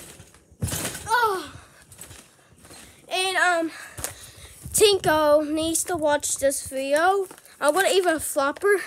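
A young boy talks close by with animation, a little out of breath.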